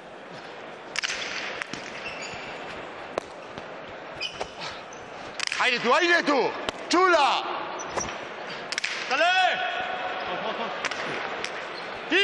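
A ball smacks hard against a wall in a large echoing hall.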